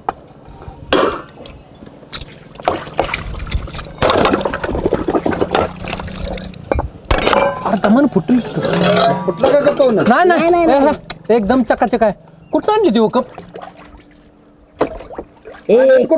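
Water splashes as a boy scrubs dishes in a tub.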